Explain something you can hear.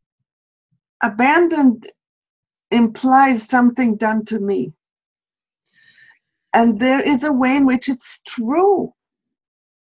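A middle-aged woman talks with animation over an online call.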